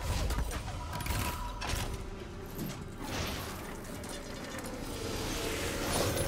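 Game combat sounds of blows and magic effects hit repeatedly.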